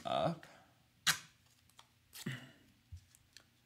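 Tape is peeled and torn from a dispenser.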